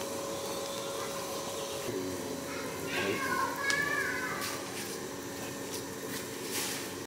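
Soup bubbles and simmers steadily in a pot.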